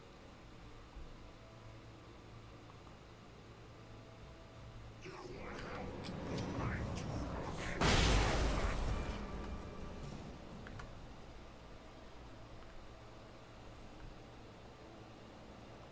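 Footsteps crunch on a forest floor.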